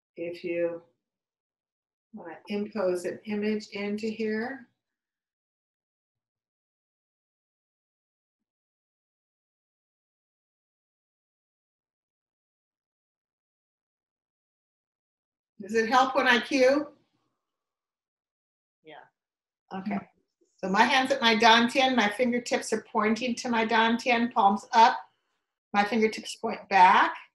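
An elderly woman speaks calmly and close by, in short bursts with long pauses.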